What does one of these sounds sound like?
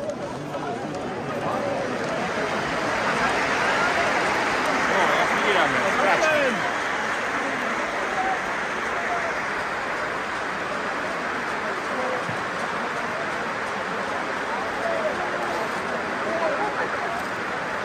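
A huge stadium crowd cheers and chants, echoing under the roof.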